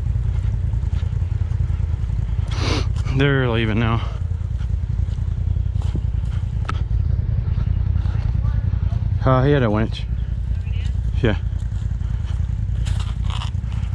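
Footsteps crunch on loose rocks and dirt.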